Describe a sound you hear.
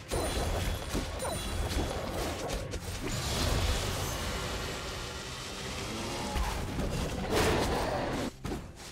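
Magic spell effects crackle and whoosh in a fast fantasy game battle.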